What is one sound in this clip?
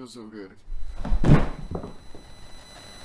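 A body thuds onto the floor.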